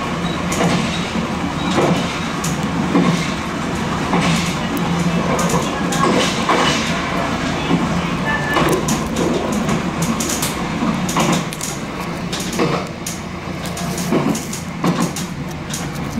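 Train wheels clatter and click over rail joints and points.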